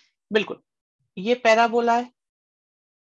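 A man speaks calmly and close to a microphone, in short bursts.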